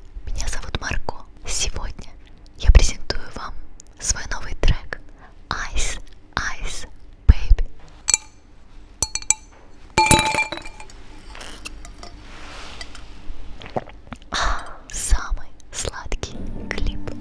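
A young woman speaks softly and close into a microphone.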